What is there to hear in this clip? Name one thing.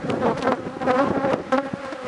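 A metal tool scrapes against wooden hive frames.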